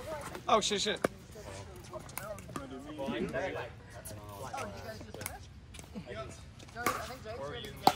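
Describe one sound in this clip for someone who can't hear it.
Paddles strike a ball with sharp pocks.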